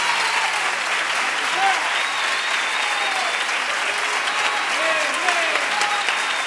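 A group of women cheers and shouts with excitement.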